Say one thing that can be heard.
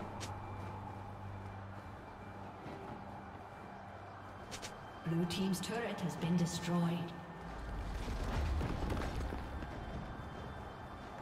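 Magical game sound effects chime and whoosh.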